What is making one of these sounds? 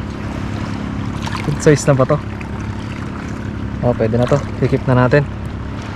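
A small fish splashes and flaps at the water's surface.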